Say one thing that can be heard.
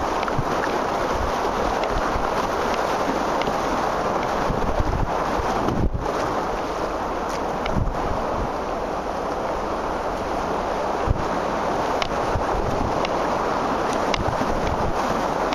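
A paddle splashes into the water.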